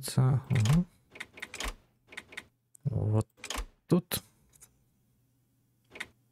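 Short interface clicks sound as a menu opens and closes.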